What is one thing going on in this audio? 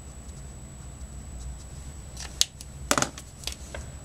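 A marker cap clicks off and on.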